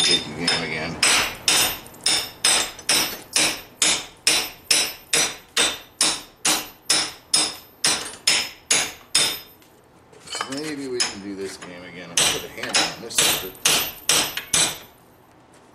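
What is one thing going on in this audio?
A hammer rings in fast, steady blows on metal.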